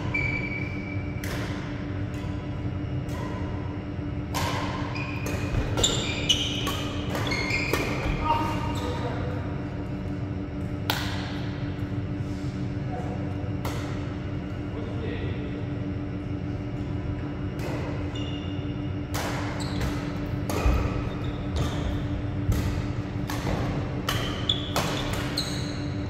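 Shoes squeak on a sports floor.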